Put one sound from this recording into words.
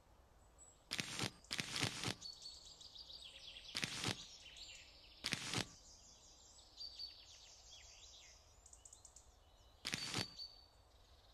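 Game menu buttons click in short taps.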